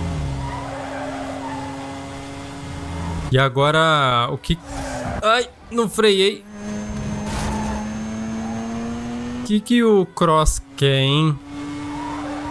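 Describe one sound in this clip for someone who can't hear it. A car engine revs and hums steadily.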